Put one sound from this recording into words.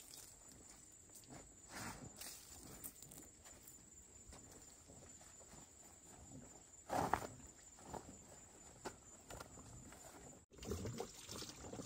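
Cloth rustles and flaps as clothes are hung on a pole.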